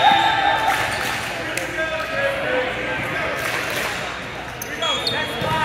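Players call out and chatter in a large echoing gym.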